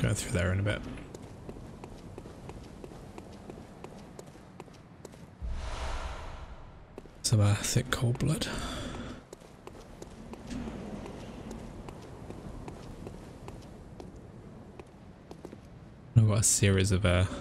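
Footsteps run across stone.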